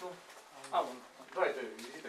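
Several adults talk in a room.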